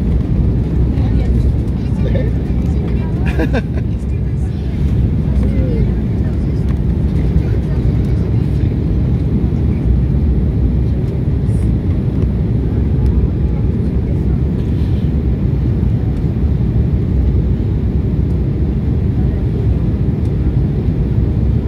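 A jet engine roars steadily in a low, constant drone.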